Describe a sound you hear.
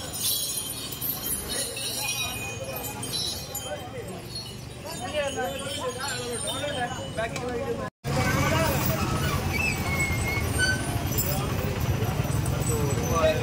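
A crowd of men chatter outdoors nearby.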